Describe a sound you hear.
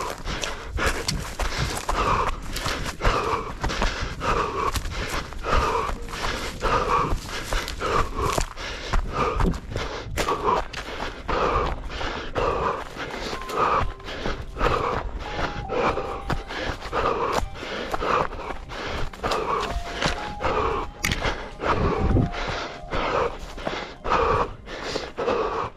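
Dry shrubs and branches brush and scrape against a passing runner.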